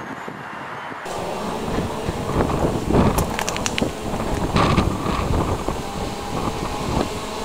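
A train approaches from a distance with a low rumble.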